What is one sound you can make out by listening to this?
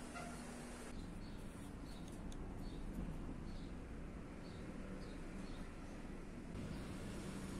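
A pencil scratches lightly on metal.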